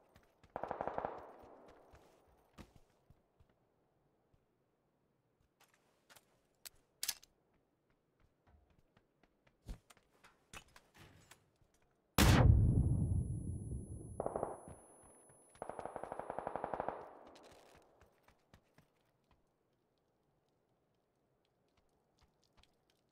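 Game footsteps patter on a hard surface.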